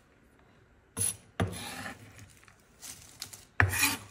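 A knife scrapes chopped pieces across a wooden board.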